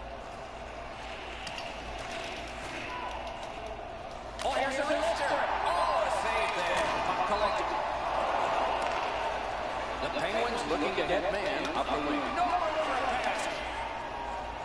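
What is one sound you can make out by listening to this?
A large arena crowd murmurs steadily.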